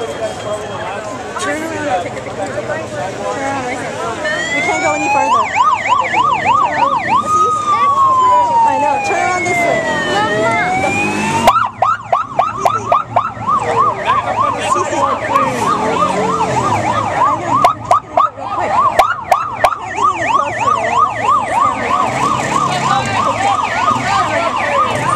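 A crowd chatters and cheers outdoors.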